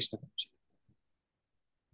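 A man speaks a few words briefly over an online call.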